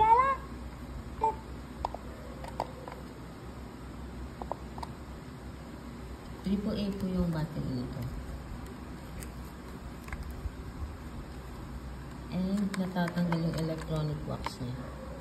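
A plush toy plays electronic sounds through a small speaker.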